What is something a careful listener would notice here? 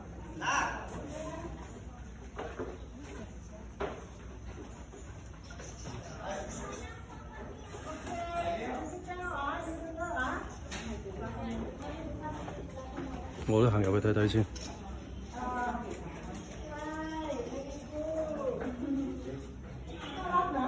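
An elderly man talks with animation nearby.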